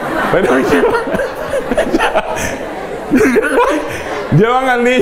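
A man laughs heartily into a microphone.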